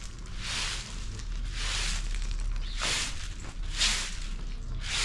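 A broom sweeps across a rough outdoor yard with brisk scratchy strokes.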